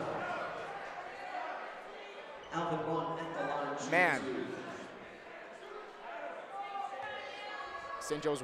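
A crowd murmurs and chatters in an echoing gym.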